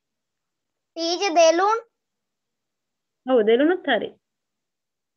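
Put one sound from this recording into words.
A young person speaks over an online call.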